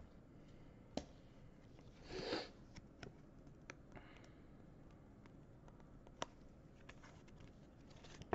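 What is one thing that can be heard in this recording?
A plastic card sleeve crinkles and clicks softly.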